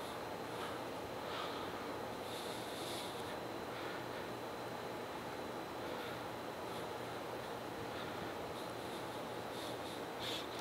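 A tap handle clicks and squeaks softly as it is turned in metal.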